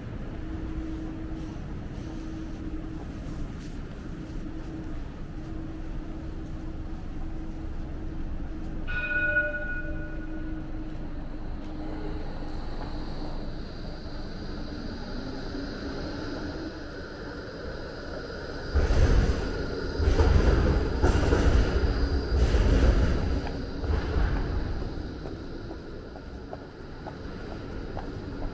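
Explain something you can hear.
City traffic hums steadily in the background outdoors.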